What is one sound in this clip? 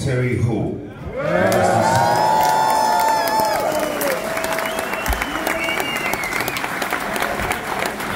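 A band plays live music.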